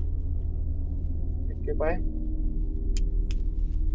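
A metal flip-top lighter clicks open and sparks alight.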